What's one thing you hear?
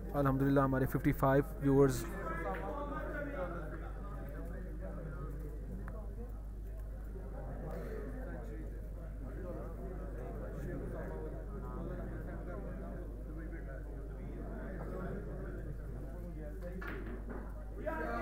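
Snooker balls click together as a cue strikes.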